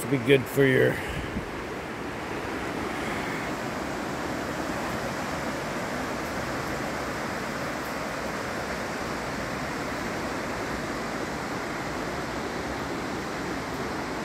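Rapids rush and roar steadily in the distance.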